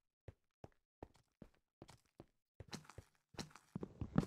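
Footsteps tap on stone at an even pace.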